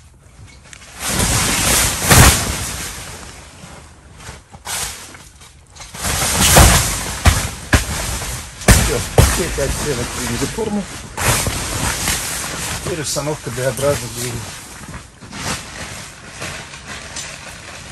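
Tent fabric rustles and flaps loudly.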